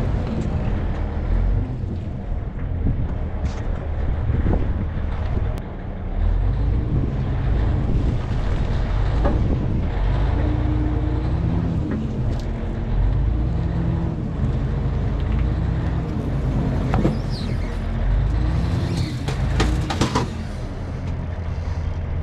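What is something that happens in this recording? A heavy tracked machine's diesel engine rumbles steadily close by.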